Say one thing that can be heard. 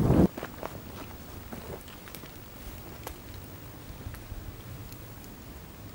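A cloth flag rustles close by.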